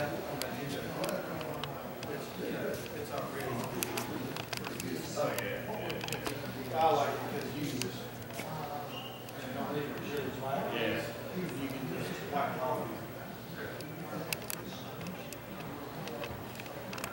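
Men talk in a large echoing hall.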